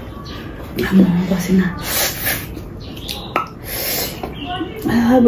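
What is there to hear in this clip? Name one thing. Young women slurp noodles noisily.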